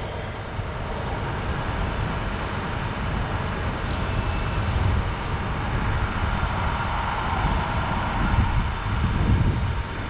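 A fire hose sprays water with a steady hiss.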